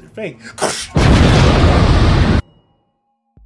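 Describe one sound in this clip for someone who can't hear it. A loud explosion roars.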